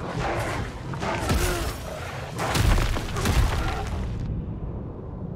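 A large creature roars and snarls.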